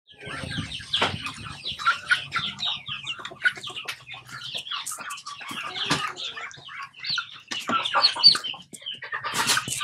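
Chickens cheep and cluck close by.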